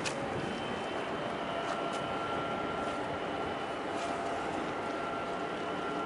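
Water laps gently outdoors.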